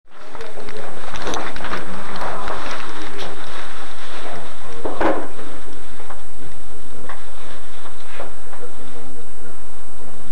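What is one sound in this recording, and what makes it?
A man talks indistinctly close by.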